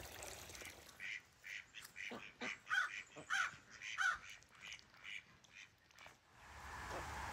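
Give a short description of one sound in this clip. A hen clucks softly.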